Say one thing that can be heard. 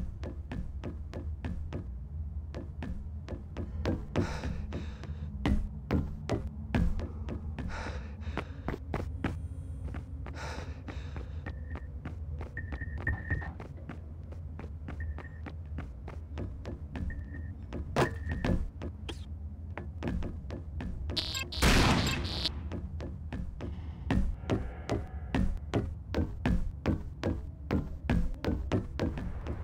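Quick footsteps clack steadily on a hard floor.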